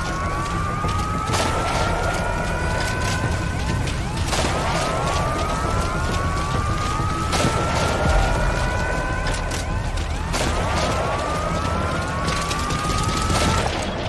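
Footsteps run quickly over stone steps and paving.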